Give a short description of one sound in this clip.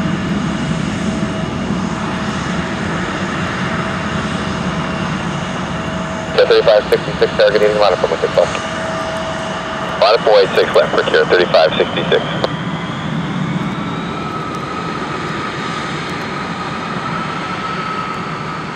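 Jet engines hum and whine steadily as airliners taxi close by.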